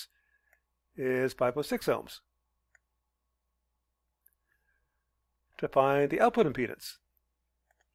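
A man speaks calmly and closely into a microphone, in short phrases.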